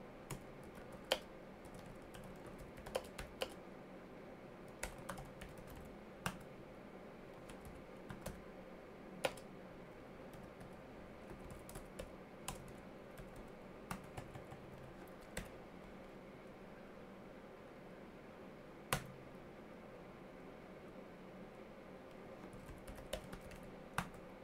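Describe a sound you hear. Keys on a keyboard click in scattered bursts, close by.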